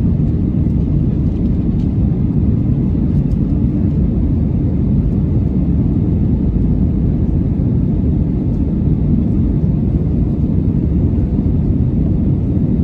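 Jet engines roar with a steady, deep rumble inside an airliner cabin.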